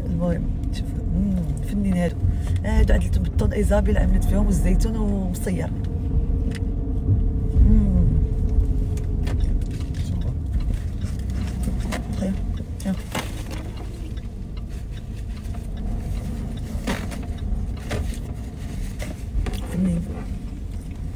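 A car engine rumbles low and steadily.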